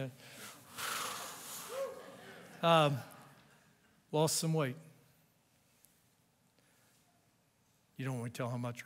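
A middle-aged man speaks through a microphone in pauses, in a large echoing hall.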